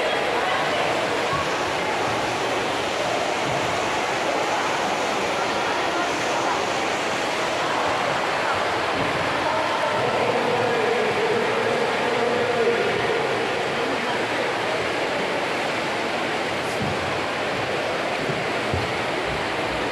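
Swimmers splash through the water.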